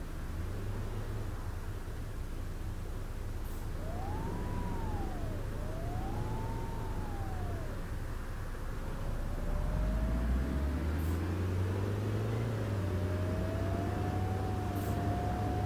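A bus engine rumbles and grows louder as the bus approaches.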